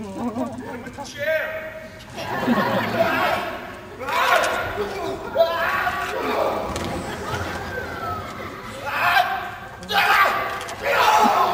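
A woman shouts sharply in bursts, echoing in a large hall.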